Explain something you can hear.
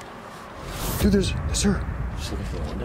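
A young man speaks urgently nearby.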